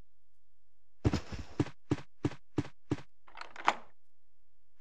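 Footsteps thud along a hallway.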